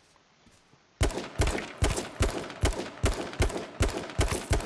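Heavy blows land repeatedly in a fast, steady rhythm.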